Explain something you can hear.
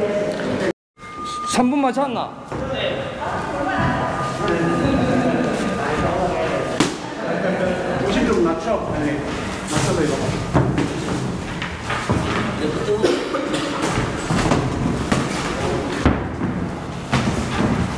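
Boxing gloves thud against each other in quick punches.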